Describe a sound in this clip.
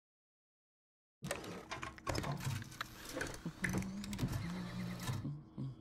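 A mechanical dial clicks as it turns.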